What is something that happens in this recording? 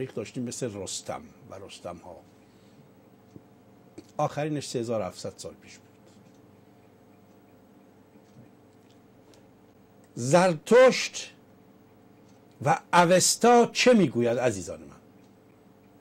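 An elderly man speaks calmly into a microphone, in short bursts with pauses.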